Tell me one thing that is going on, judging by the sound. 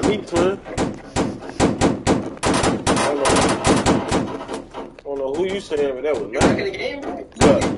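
A gun fires in rapid bursts.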